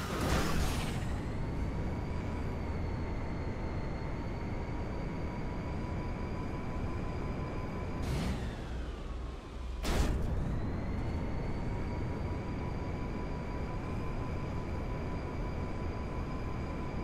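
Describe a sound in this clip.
A car engine hums with a steady high whine.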